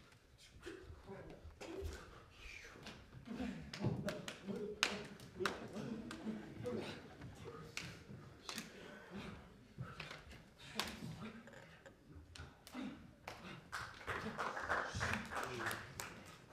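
Bare feet thud and slap on a wooden stage floor.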